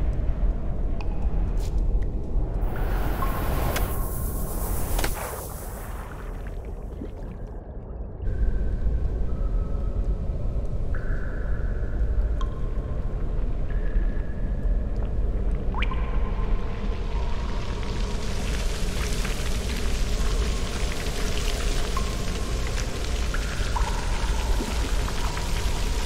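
Water swirls and rushes as a small fish swims underwater.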